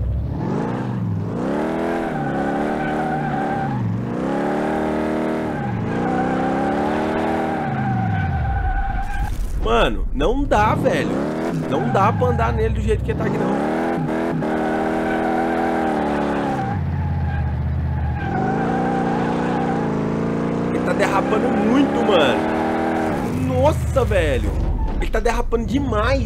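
A car engine revs hard, rising and falling again and again.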